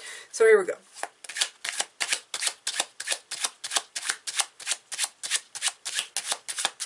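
Playing cards are shuffled with quick, rapid flicks.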